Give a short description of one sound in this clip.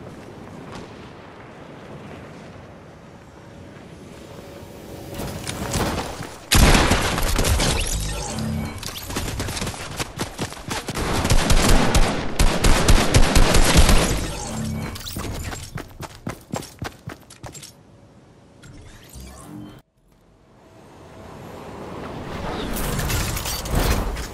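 Wind rushes past during a glide through the air.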